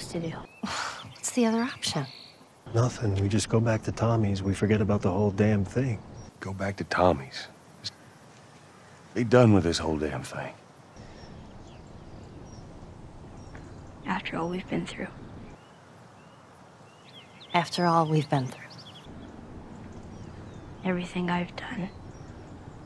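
A girl speaks in short, questioning lines.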